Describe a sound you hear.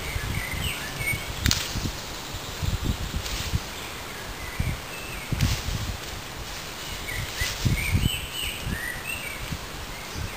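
Leaves and branches rustle as a person moves through brush nearby.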